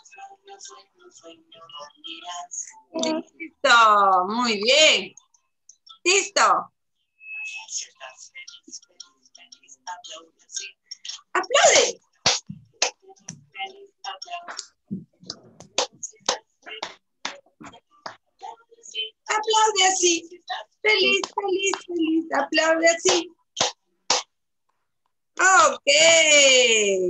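A young woman sings and speaks with animation through an online call.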